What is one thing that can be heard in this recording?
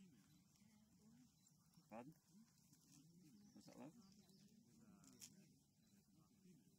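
Several adults talk quietly some distance away outdoors.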